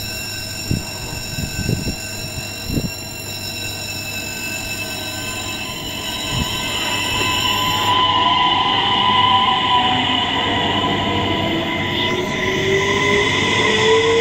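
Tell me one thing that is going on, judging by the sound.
A train rolls past close by with a rising hum and rumble.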